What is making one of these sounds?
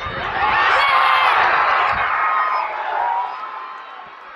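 A crowd cheers loudly in an open stadium.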